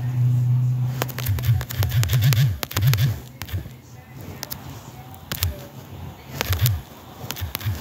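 Phone keyboard taps click quickly.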